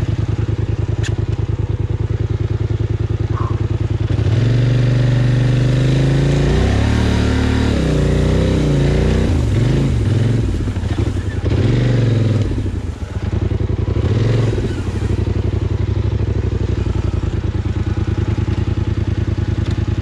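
An all-terrain vehicle's engine idles with a steady chugging throb.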